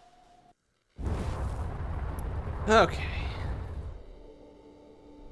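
A spaceship whooshes loudly into a jump.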